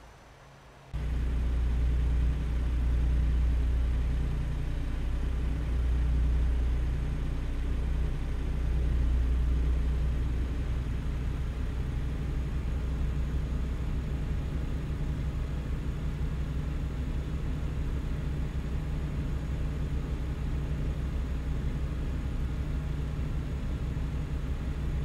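A truck engine hums low and steady while driving on a highway.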